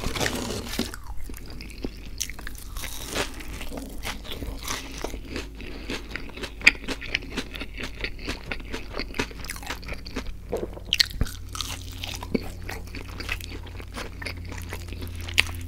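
A man chews crunchy food close to a microphone.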